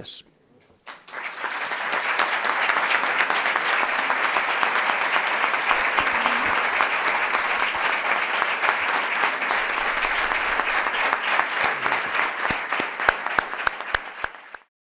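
An audience applauds steadily in a large room.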